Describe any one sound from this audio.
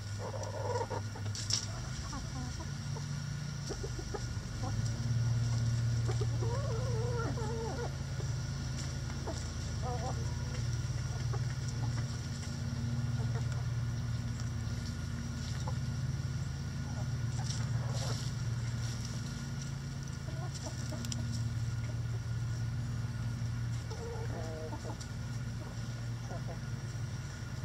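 Chickens scratch and peck in dry straw.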